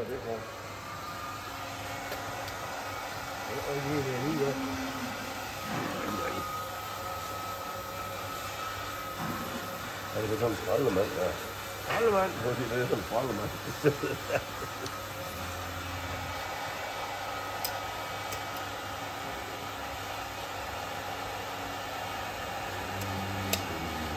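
An electric grinder whirs steadily.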